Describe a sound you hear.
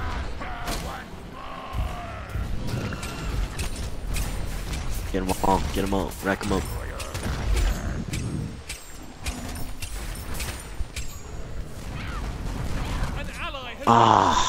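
Magic blasts hit with sharp impacts.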